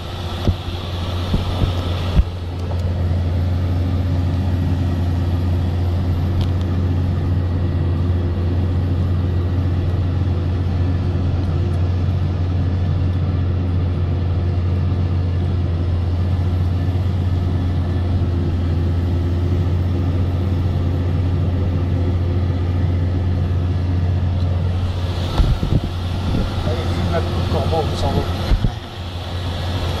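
A diesel tractor engine drones under load, heard from inside the cab.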